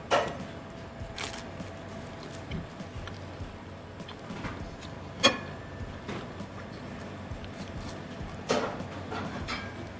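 A young man chews food close by.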